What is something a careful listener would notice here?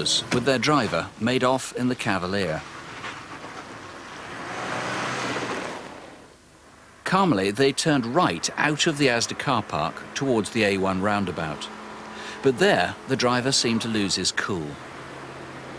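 A car drives past, its tyres hissing on a wet road.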